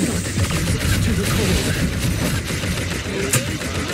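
Fiery blasts crackle and roar in quick bursts.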